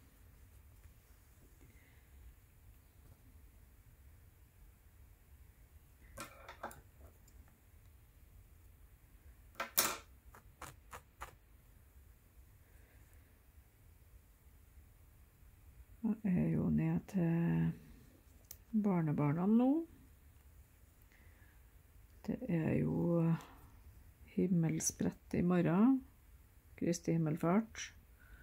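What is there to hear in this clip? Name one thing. Thread rasps softly as it is pulled through taut fabric.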